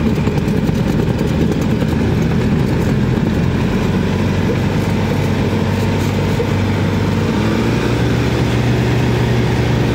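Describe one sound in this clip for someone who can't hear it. A plane's wheels rumble over the runway.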